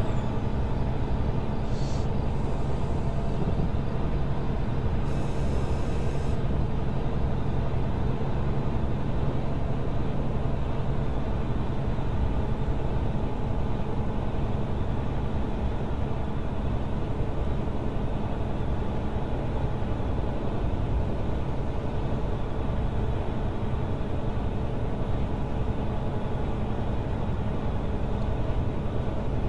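A truck engine rumbles steadily while driving.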